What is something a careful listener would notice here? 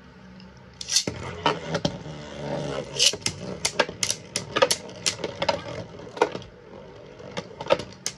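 Spinning tops clash together with sharp clacks.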